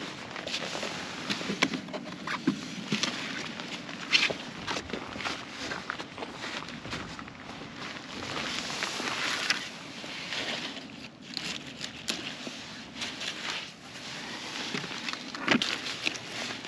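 Zucchini thud softly as they are dropped into a wooden crate.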